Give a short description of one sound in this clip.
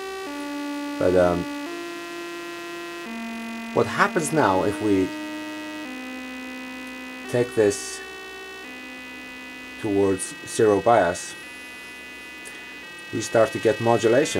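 A synthesizer makes short bursts of plucked, bubbling tones that sweep up and down.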